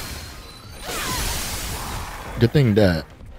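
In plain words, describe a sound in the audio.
Magic bursts crackle and whoosh.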